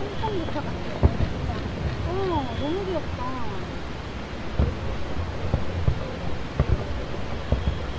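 Fireworks bang and pop in the distance.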